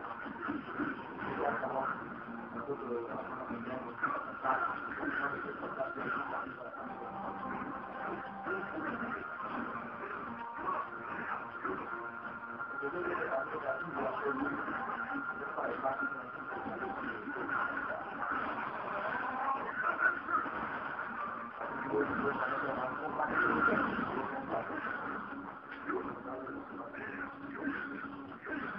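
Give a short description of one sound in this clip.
Game music plays steadily through a television speaker.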